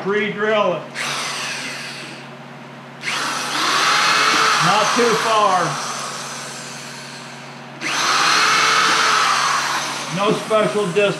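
A power drill whirs in bursts.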